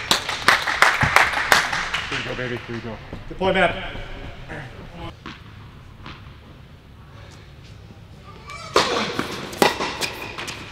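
A tennis ball is struck and bounces, echoing in a large indoor hall.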